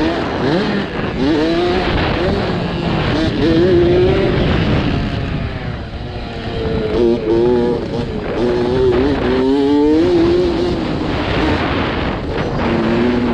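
A dirt bike engine revs up and down through the gears.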